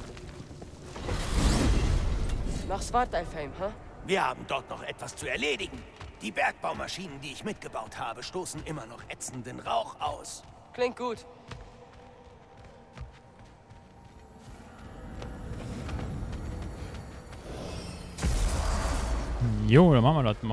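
A deep magical whoosh rushes past.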